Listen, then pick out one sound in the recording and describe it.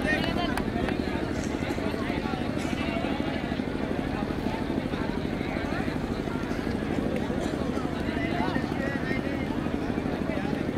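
A crowd of young men chatters and calls out outdoors.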